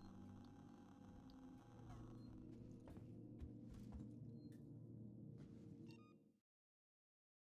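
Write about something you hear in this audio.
A low mechanical hum drones steadily, then cuts off.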